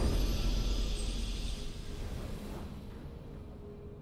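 A triumphant game fanfare plays and slowly fades.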